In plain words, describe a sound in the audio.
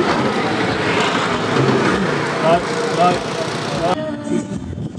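A group of men chatter and laugh cheerfully nearby.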